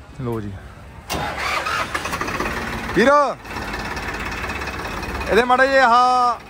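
A tractor engine runs and revs.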